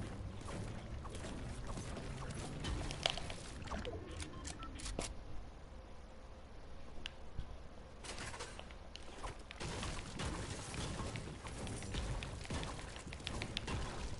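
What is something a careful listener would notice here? A pickaxe strikes and shatters objects with sharp cracks.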